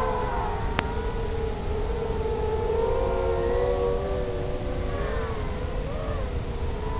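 Drone motors whine steadily, rising and falling in pitch as the drone swoops.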